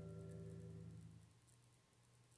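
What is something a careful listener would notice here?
A short game tune plays through a television speaker and stops.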